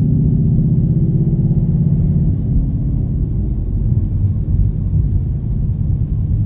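A car engine hums steadily, heard from inside.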